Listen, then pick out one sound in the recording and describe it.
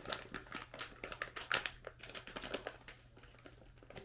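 A snack wrapper rustles and crinkles in someone's hands.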